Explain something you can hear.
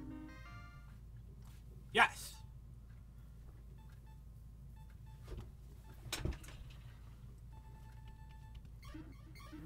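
Electronic game tones beep softly as a score tallies.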